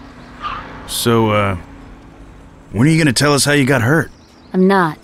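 A man speaks loudly with a gruff voice.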